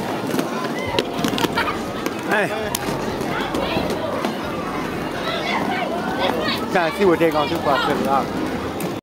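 Roller skate wheels roll and rumble on a wooden floor.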